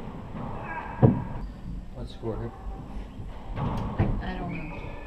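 A ball smacks hard against walls and rackets, echoing in a large empty court.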